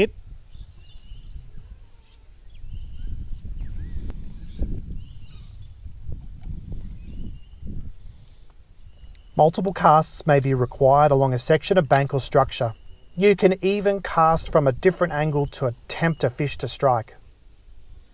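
A fishing reel whirs as its handle is turned.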